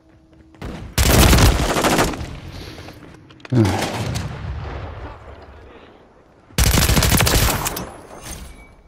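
An automatic rifle fires loud, rapid bursts.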